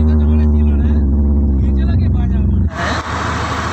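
A low electrical hum drones from amplifiers.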